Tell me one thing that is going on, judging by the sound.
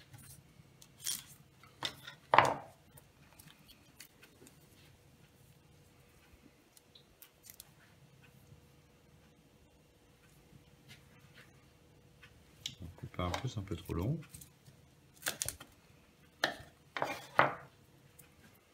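A knife taps and knocks against a wooden cutting board.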